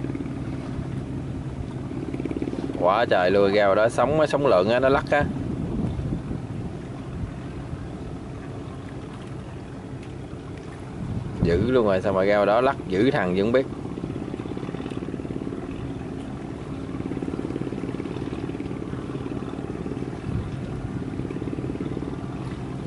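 A boat engine drones steadily on the water.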